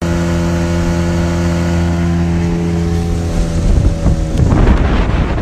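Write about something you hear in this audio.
An outboard motor drones steadily close by, then stops.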